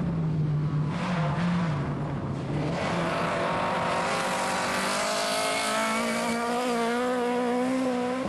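Gravel sprays and rattles under spinning tyres.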